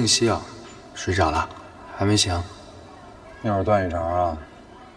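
A man speaks calmly and questioningly nearby.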